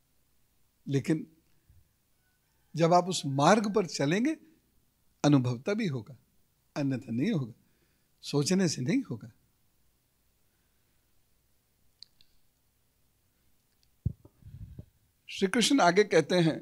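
A middle-aged man speaks calmly and warmly into a microphone, in short phrases with pauses.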